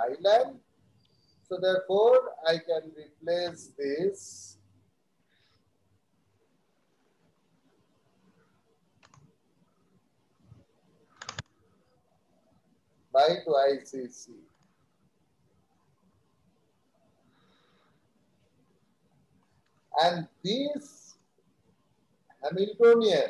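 A man lectures calmly through an online call, pausing between phrases.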